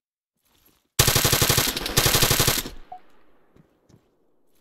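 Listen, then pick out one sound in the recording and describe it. A rifle fires a rapid burst of loud shots, echoing afterwards.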